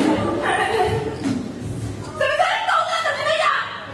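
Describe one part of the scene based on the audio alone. A young woman sings solo with animation.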